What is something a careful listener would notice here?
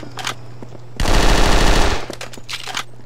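Gunfire bursts out in loud rapid shots.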